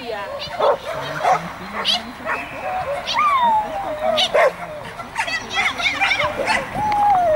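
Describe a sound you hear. A woman shouts quick commands outdoors.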